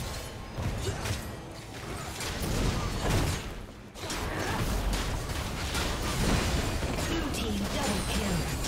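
Game spells crackle and burst during a fight.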